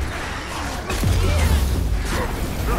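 A loud explosion booms with a deep rumble.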